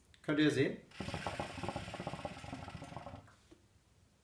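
Water bubbles in a hookah as a young man draws on it.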